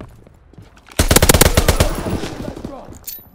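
Gunfire rattles in a fast burst.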